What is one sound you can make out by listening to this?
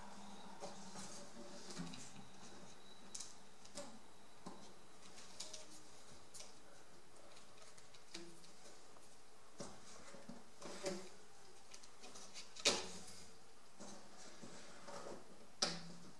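Small wooden sticks click and tap against each other as they are handled.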